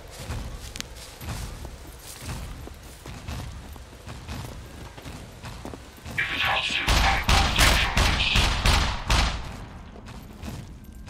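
Heavy footsteps thud at a steady walking pace.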